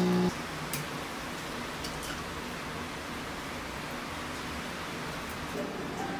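Coffee pours over ice cubes in a glass.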